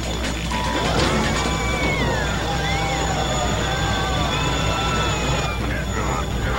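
An electronic energy blast whooshes and warbles.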